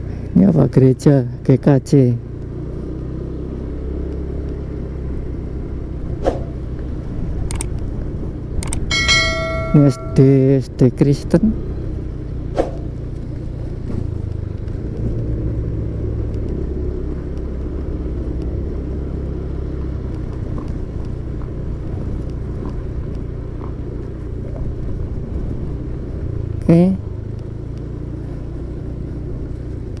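Tyres rumble over a rough, bumpy road.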